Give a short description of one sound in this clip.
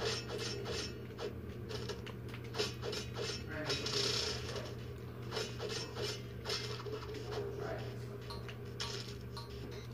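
Video game combat hits and effects play through a television speaker.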